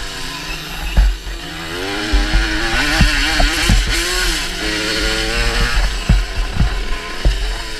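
A dirt bike's suspension thumps over bumps.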